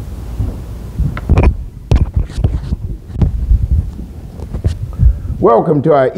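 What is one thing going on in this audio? A microphone thumps and rustles as it is handled.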